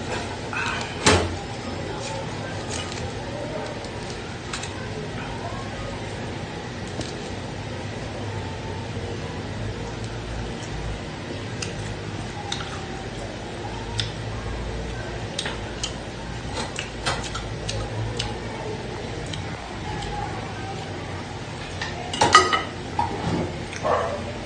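Metal tongs clink against a metal tray.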